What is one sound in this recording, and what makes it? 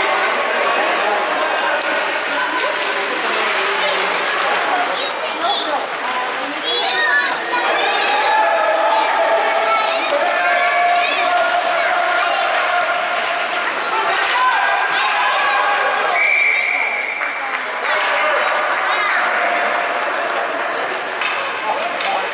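Young players and spectators shout and call out in a large echoing rink.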